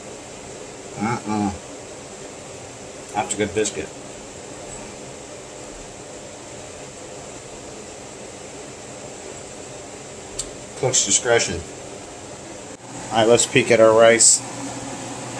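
A middle-aged man talks calmly close by, in short bursts.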